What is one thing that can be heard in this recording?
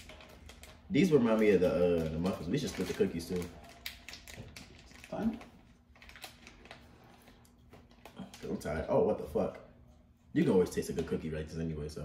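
A candy wrapper crinkles.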